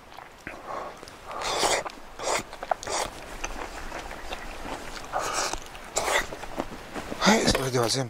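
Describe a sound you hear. A person slurps noodles noisily.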